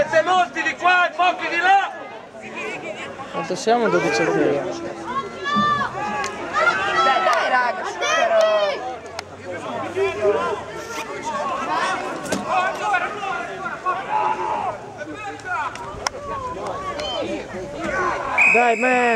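Young men shout and call out across an open playing field outdoors.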